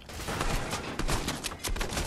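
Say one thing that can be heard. A pickaxe strikes a wooden wall with sharp knocks.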